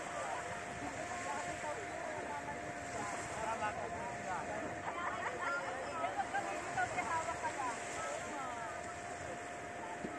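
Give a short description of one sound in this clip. A group of young people chatter and shout excitedly outdoors.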